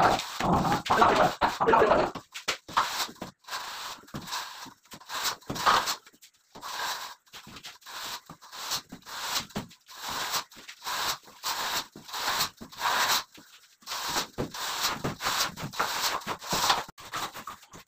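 A metal straightedge scrapes across wet plaster in long, rasping strokes.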